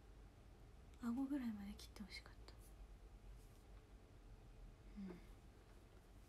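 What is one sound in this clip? A young woman speaks softly and briefly close to a microphone.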